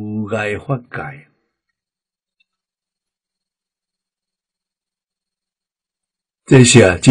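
An elderly man speaks calmly and close up, with long pauses.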